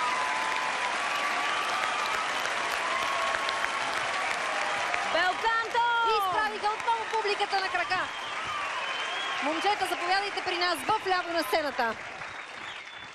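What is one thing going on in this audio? A large crowd cheers and claps in a big echoing hall.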